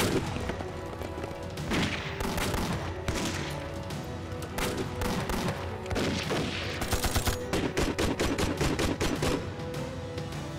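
Rifles fire in rapid bursts nearby.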